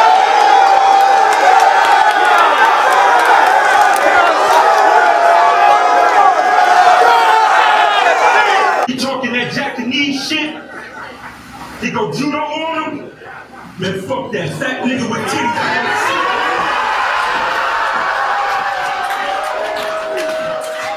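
A large crowd cheers and shouts loudly.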